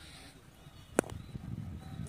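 A cricket bat hits a ball with a sharp crack.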